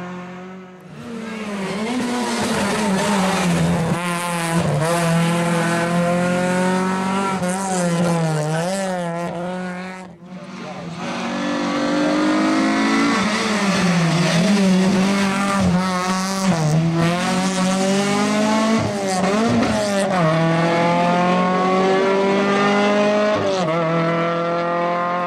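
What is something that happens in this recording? A rally car engine revs hard, rising and dropping in pitch as it accelerates and shifts gears.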